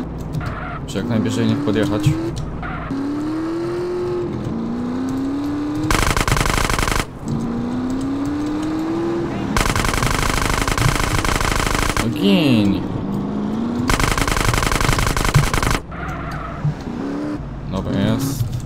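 A motorbike engine revs and whines, rising and falling in pitch.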